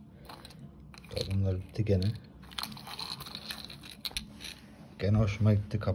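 Metal shells clink together as a hand sorts through them.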